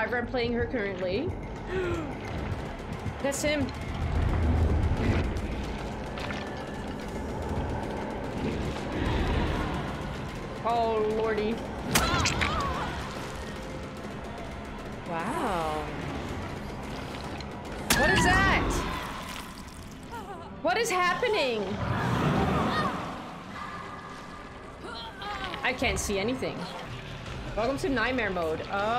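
A young woman talks with animation, close up.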